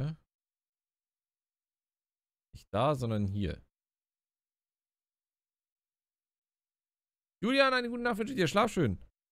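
A man speaks casually into a close microphone, in short bursts.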